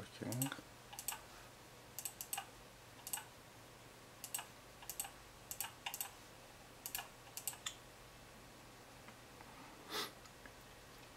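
A computer mouse clicks several times in quick succession.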